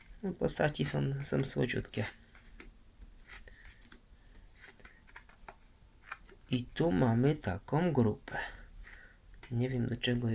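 Playing cards rustle and tap softly as they are handled.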